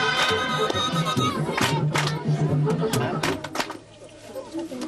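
A crowd of villagers sings loudly outdoors.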